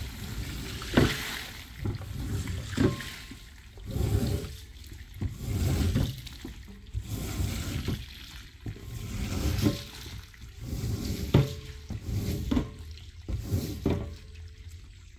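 A squeegee scrapes and swishes water across a wet rug.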